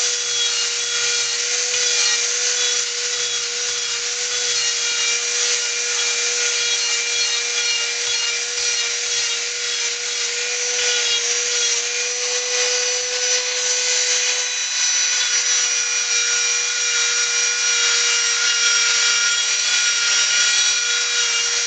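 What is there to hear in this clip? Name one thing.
A small rotary tool whines steadily at high speed.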